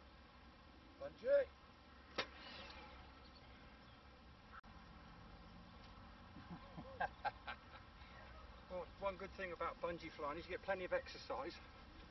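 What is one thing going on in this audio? A man speaks casually outdoors, close by.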